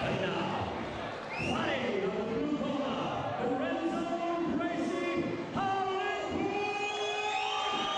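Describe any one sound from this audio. A man announces loudly through a microphone in a large echoing hall.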